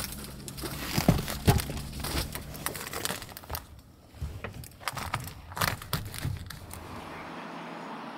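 Padded covers thump and snap into place against windows.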